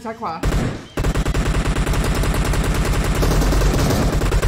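Rapid gunshots fire in a game.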